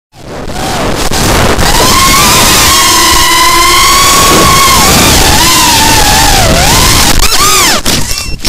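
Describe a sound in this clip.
Drone motors whine loudly, rising and falling in pitch as the drone speeds along.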